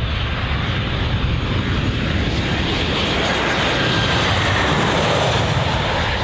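A jet airliner roars low overhead.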